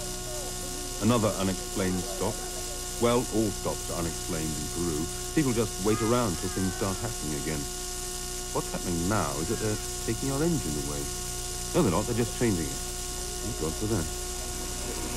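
A man speaks calmly, in short bursts.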